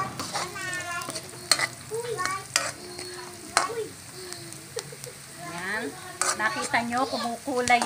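Onions sizzle softly in hot oil.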